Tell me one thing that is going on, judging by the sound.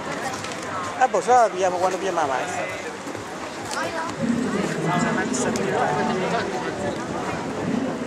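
Young women talk casually close by.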